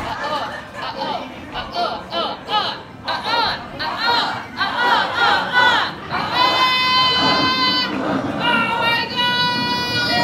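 A man talks nearby in a noisy room.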